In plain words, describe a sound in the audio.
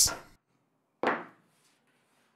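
A wooden mallet knocks against a wooden tabletop.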